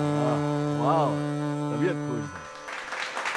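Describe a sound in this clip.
A man sings loudly with feeling.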